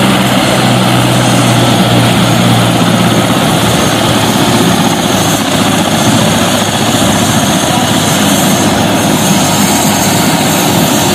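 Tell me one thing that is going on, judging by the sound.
A helicopter engine roars loudly and steadily close by.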